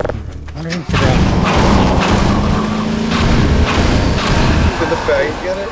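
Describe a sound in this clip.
A vehicle engine roars past.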